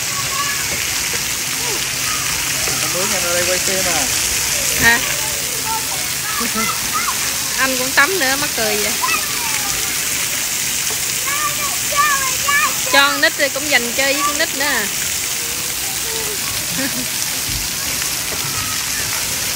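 Water sprays and splashes steadily outdoors.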